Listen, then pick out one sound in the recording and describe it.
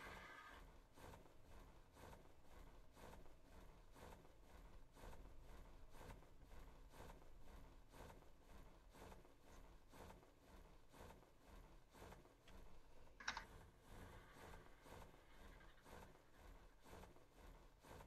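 Large wings flap with steady, regular beats.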